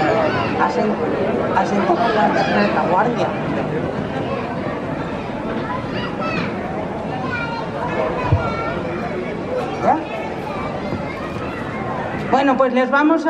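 Women talk loudly and with animation from a stage, heard from a distance.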